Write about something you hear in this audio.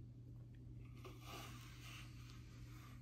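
A cat rubs its fur against a bristle brush with a soft scratching sound.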